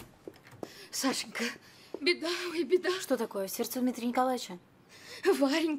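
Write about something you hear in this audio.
An elderly woman shouts angrily nearby.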